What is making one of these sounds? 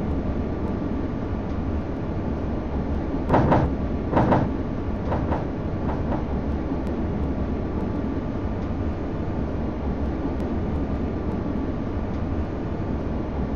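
A tram motor hums steadily as the tram rolls along.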